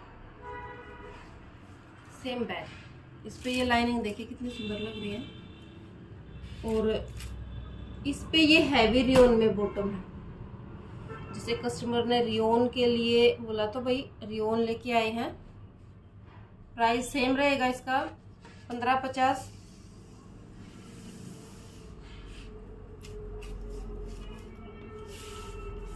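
Cloth rustles as it is handled and folded.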